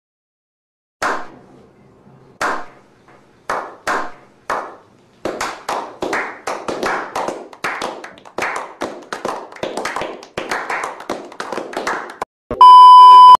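A small group of men claps, slowly at first and then faster.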